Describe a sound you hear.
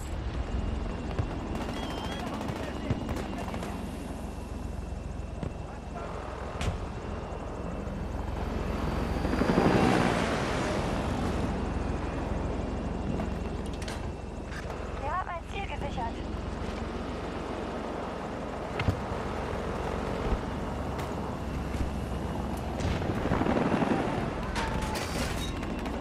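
Helicopter rotor blades whir and thump steadily.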